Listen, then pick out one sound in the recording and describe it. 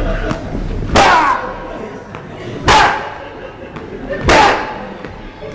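Sharp slapping hits ring out with echo.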